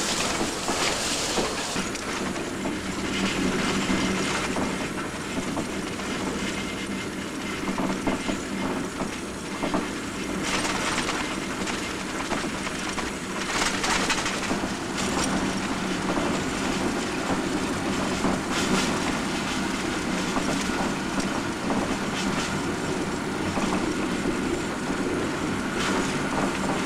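Train wheels rattle and clack over the rails.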